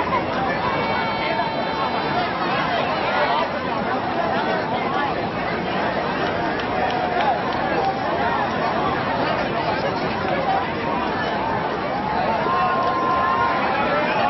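A crowd cheers and shouts across an open field.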